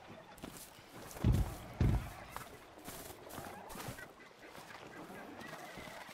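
Footsteps crunch on grass.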